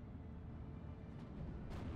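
An explosion booms dully.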